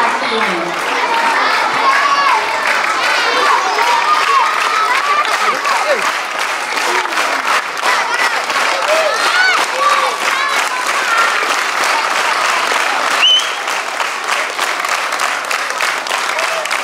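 A large crowd of children chatters and shouts in high voices.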